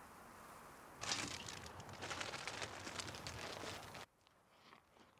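A car drives past, its tyres crunching on gravel.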